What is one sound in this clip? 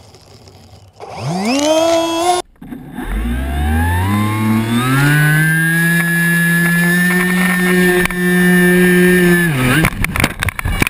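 A motorcycle engine revs up and holds a loud, high whine.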